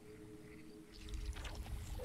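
A short alien screech sounds as a game unit is selected.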